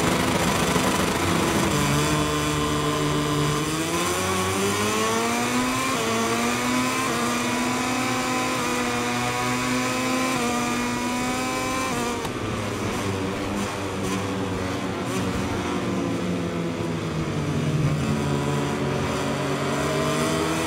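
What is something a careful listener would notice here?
Several motorcycle engines whine together in a pack.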